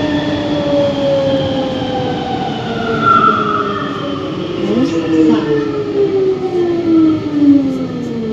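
Rubber tyres of a metro rumble in a tunnel.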